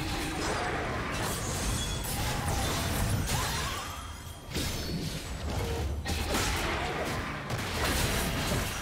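Game spell effects crackle, whoosh and burst in a fast fight.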